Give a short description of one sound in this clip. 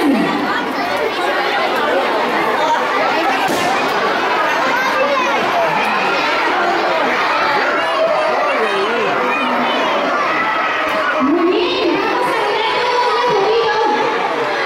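A large crowd of children chatters and shouts loudly all around.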